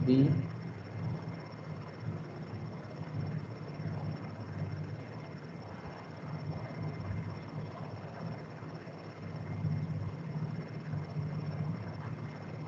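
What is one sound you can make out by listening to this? A man lectures calmly, heard through an online call.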